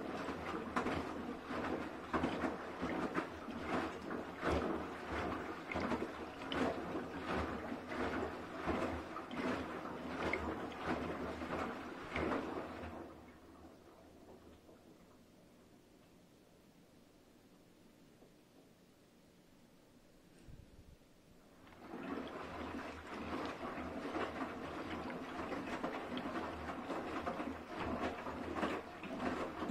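Wet laundry sloshes and thumps inside a turning washing machine drum.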